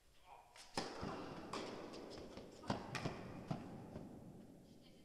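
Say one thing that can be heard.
A tennis ball bounces on the court.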